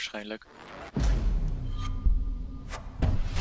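A game's reward pack opens with a whooshing, shimmering effect.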